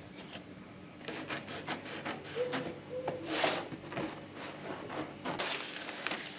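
A knife slices and scrapes through thick paper.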